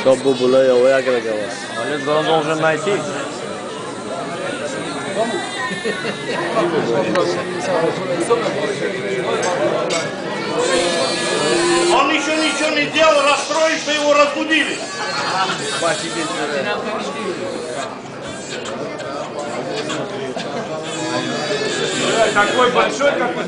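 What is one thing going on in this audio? Several men sing and chant together.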